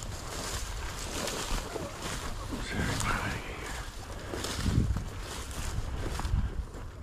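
Wind blows outdoors, rumbling low.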